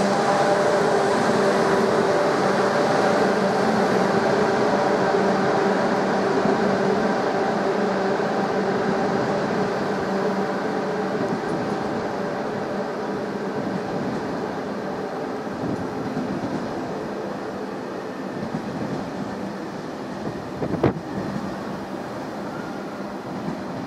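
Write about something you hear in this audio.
A train rumbles along an overhead track and slowly fades away.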